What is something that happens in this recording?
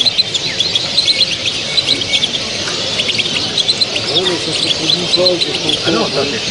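Small caged birds chirp and twitter rapidly.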